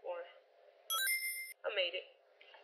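A short, high electronic chime rings out.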